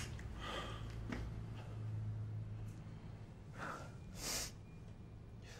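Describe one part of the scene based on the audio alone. A young man breathes out heavily in distress.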